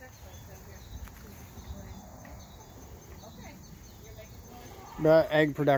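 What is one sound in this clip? Hens cluck softly nearby.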